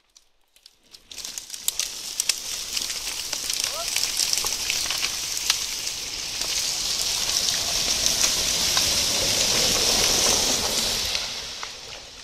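Dry branches and twigs crackle and rustle underfoot close by.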